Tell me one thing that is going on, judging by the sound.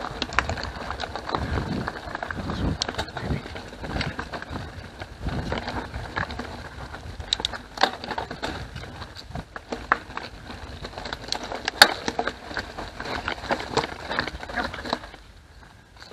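A bicycle rattles and clicks over bumps.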